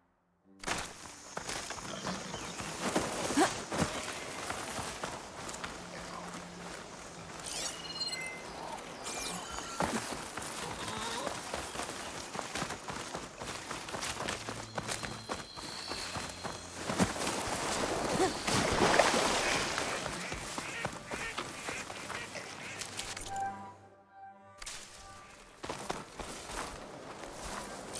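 Footsteps rustle through dense leafy undergrowth.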